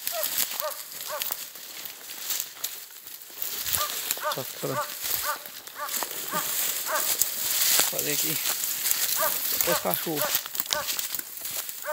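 Branches scrape and swish against clothing.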